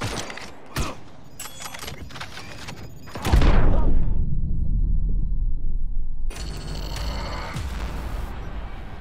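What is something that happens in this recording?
Gunfire and explosions boom loudly in a video game.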